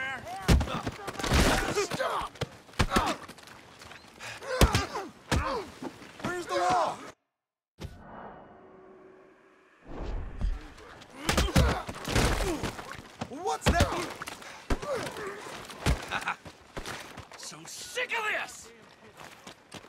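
Men shout and grunt while fighting.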